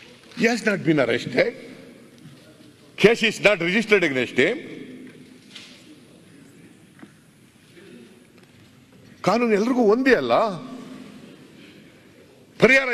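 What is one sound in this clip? An elderly man speaks forcefully into a microphone in a large hall.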